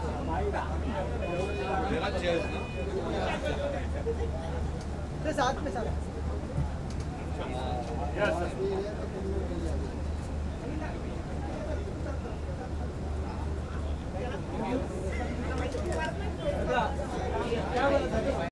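A crowd of men call out and chatter nearby.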